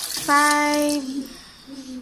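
Water pours from a mug into a metal pot.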